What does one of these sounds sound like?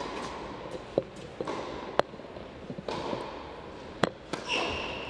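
A tennis ball bounces a few times on a hard court.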